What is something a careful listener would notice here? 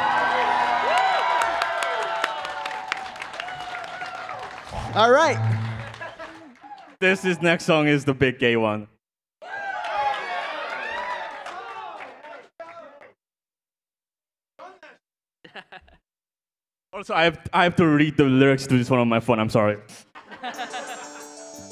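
Several performers sing together into microphones.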